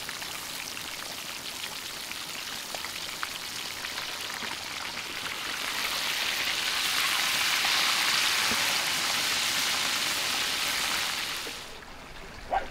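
Hot oil sizzles and crackles loudly up close.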